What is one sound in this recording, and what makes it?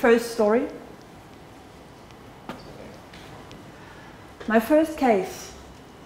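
A young woman speaks into a microphone in short bursts with pauses.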